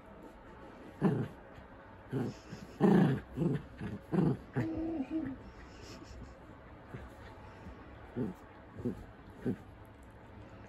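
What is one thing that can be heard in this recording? A small dog growls playfully close by.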